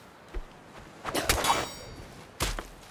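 A thrown stone strikes wood with a loud crack.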